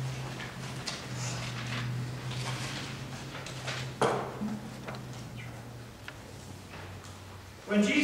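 A man speaks calmly through a microphone in an echoing room.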